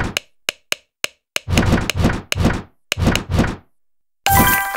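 Short electronic pops sound as game moves are made.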